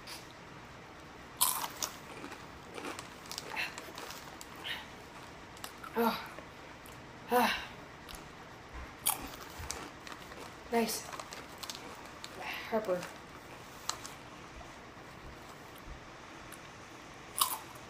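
Chips crunch as a teenage boy eats.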